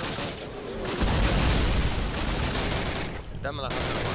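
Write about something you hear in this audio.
A loud explosion booms and rumbles nearby.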